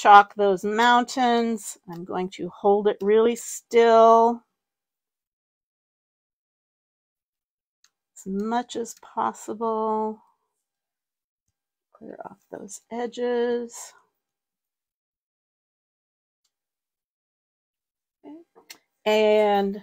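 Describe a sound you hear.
A woman talks calmly into a clip-on microphone, close by, in bursts with pauses.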